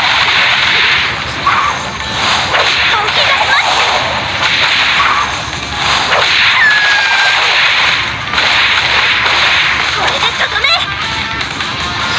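Blades slash and energy blasts crackle in a fast fight.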